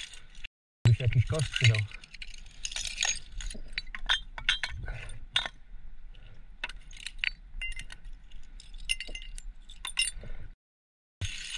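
Glass bottles clink and knock against each other on stone.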